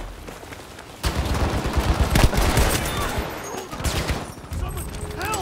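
A rifle fires rapid shots at close range.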